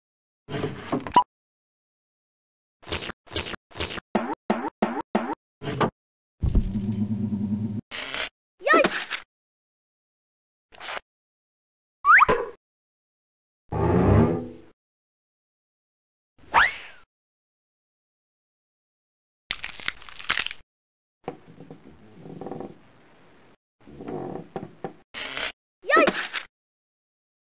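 A cartoon dog speaks with animation in a high, clear voice.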